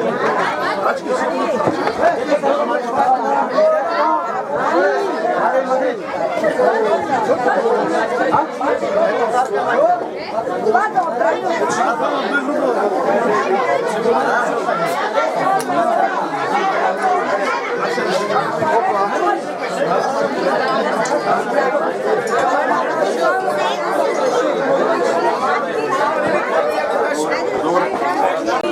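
A crowd of men, women and children chatter loudly all around outdoors.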